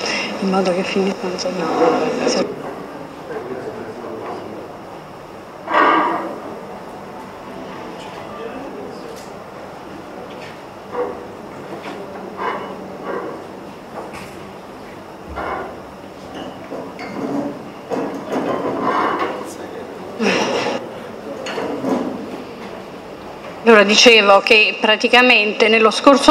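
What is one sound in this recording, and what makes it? A woman speaks through a microphone and loudspeakers in an echoing hall.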